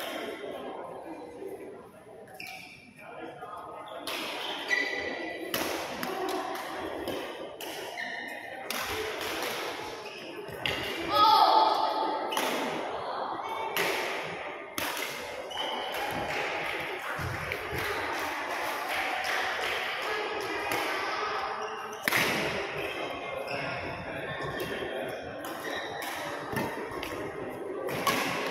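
Children's voices chatter and call out across a large echoing hall.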